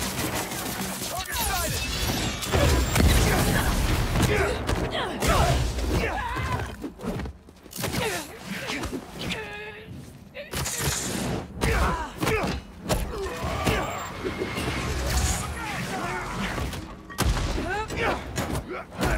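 Punches and blows thud during a fight.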